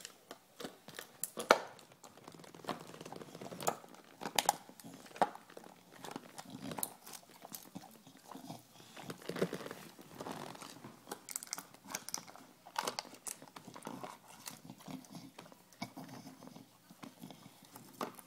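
A dog snuffles and breathes heavily close by.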